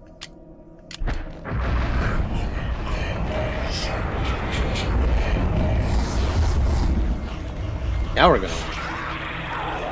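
A low rumbling game ambience swells and drones.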